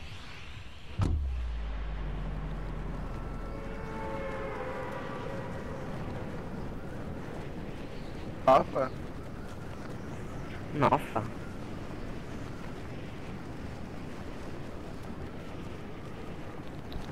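Wind rushes steadily past a gliding character.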